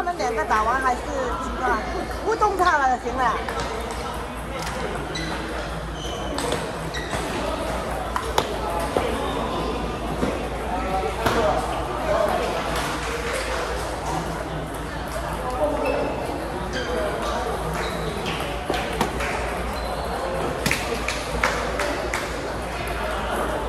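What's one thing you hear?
A hum of many voices fills a large echoing hall.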